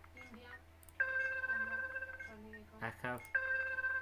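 Electronic tones beep steadily.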